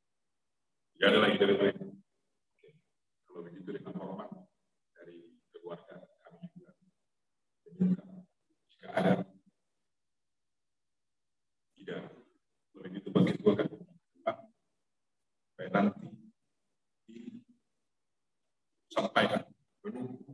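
A middle-aged man speaks calmly into a microphone, with pauses, heard through an online call.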